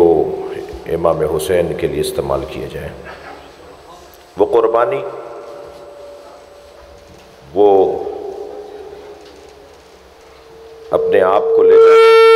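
A man gives a speech loudly and with passion through a microphone and loudspeakers, echoing in a large hall.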